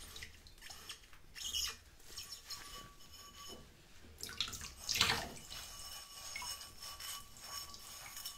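A sponge squeaks and scrubs against a glass.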